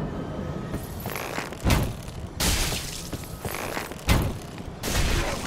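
Flames burst with loud, whooshing blasts.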